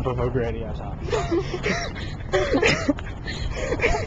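A young man laughs close to the microphone.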